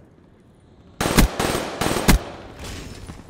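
A rifle fires loud, rapid bursts of shots.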